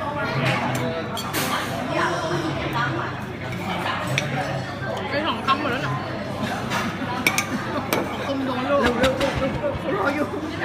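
Spoons clink against a plate.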